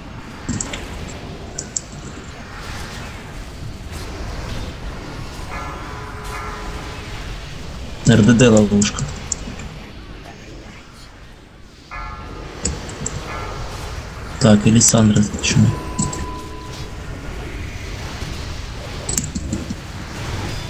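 Magic spells crackle and burst in a busy battle.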